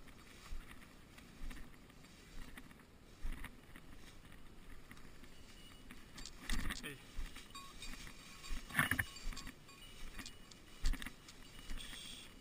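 Dogs rustle through dry grass.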